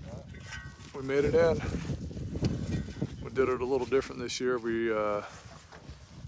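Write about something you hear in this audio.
A man talks with animation close to the microphone.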